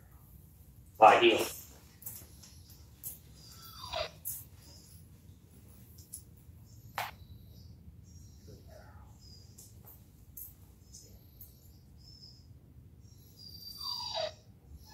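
A man speaks to a dog in short, upbeat words, close by.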